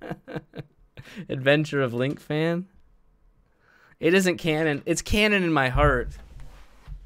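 A young man laughs close to a microphone.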